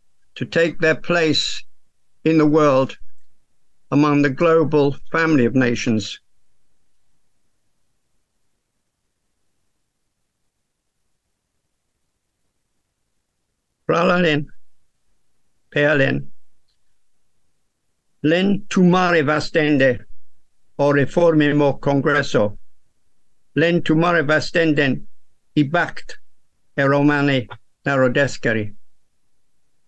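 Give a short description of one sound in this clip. An elderly man speaks calmly through an online call microphone, pausing between phrases.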